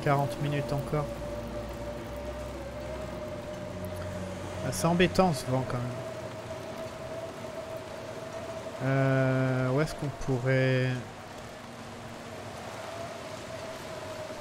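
A strong wind howls steadily outdoors in a snowstorm.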